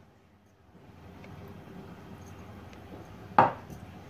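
Dry powder pours softly into a plastic bowl.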